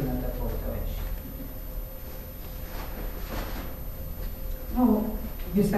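A middle-aged woman speaks calmly into a microphone, heard through a loudspeaker.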